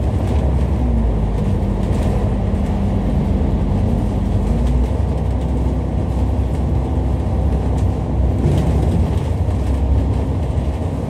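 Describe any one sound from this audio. A bus engine rumbles and hums steadily from close by.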